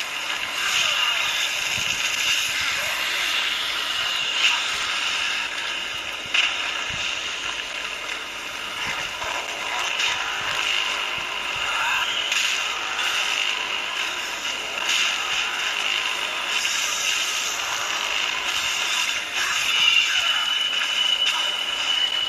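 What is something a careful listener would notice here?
Video game combat sounds clash and boom through a phone speaker.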